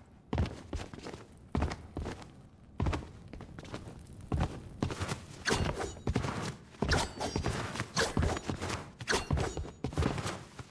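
A game character's footsteps and landings thud in quick bursts.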